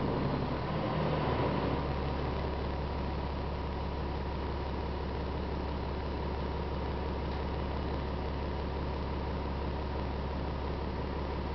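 A bus engine idles with a steady low hum, heard from inside.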